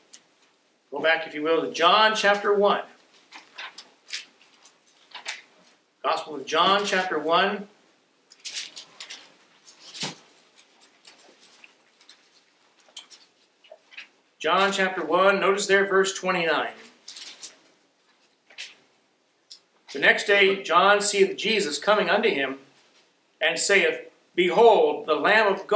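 A middle-aged man reads aloud into a microphone in calm phrases with pauses.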